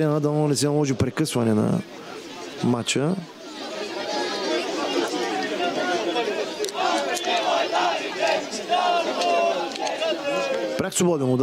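A crowd of fans chants and sings loudly outdoors.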